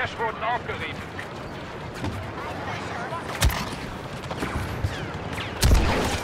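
Laser blasters fire in quick sharp bursts.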